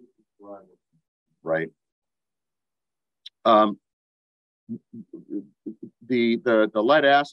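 An elderly man speaks calmly through an online call microphone, in short bursts with pauses.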